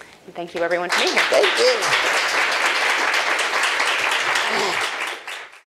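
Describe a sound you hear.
People in an audience cheer and whoop.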